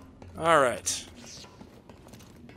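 A lightsaber hums and swooshes through the air.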